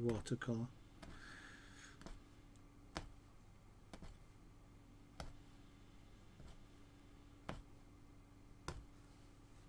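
A needle tool pokes through taut cloth with soft, regular pops.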